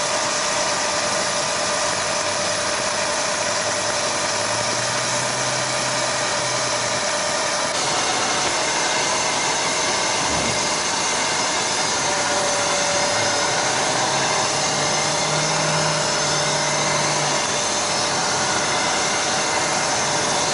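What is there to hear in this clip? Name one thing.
A hydraulic motor hums as a large aircraft cargo door slowly closes.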